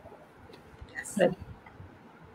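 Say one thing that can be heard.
A woman laughs softly over an online call.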